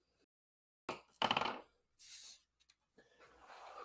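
Paper rustles as a card is handled.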